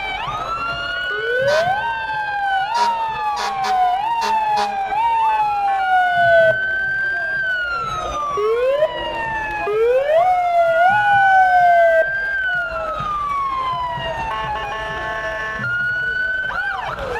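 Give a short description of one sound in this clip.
Sirens wail up and down from emergency vehicles close by.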